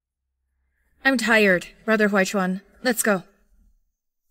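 A young woman speaks quietly and wearily nearby.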